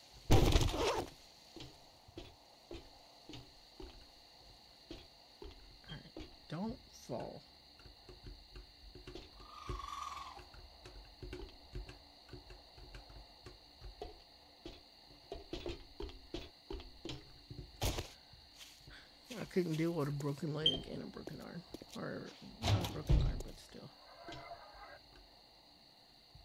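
Footsteps thud steadily on hard ground and metal stairs.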